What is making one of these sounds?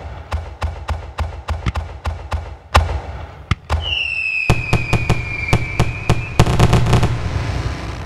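Fireworks pop and crackle in quick bursts.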